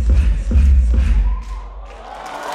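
Loud dance music with a heavy thumping beat plays through loudspeakers.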